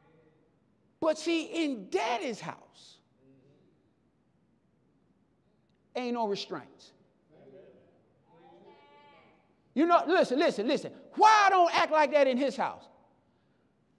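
A man preaches with animation through a microphone in an echoing hall.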